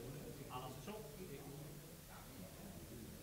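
A cue strikes a billiard ball with a soft click.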